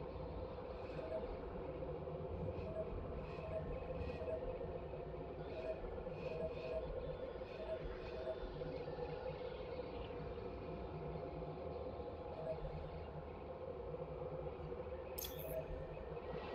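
Soft electronic blips sound again and again as a selection changes.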